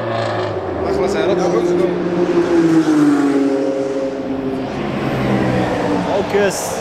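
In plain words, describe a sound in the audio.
A car engine revs loudly as a car passes close by.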